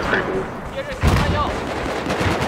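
A rocket launcher fires with a loud, echoing boom.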